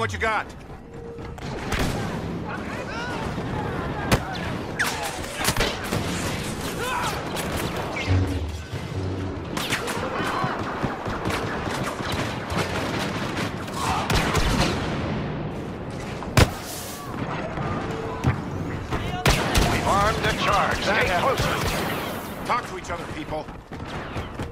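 Blaster shots fire in sharp bursts.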